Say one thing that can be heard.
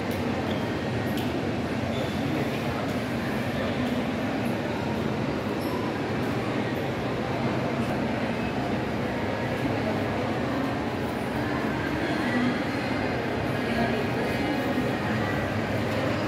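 A large echoing hall hums with a steady din of distant voices.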